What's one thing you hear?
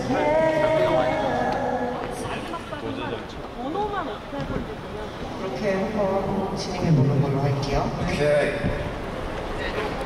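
A young man speaks calmly into a headset microphone.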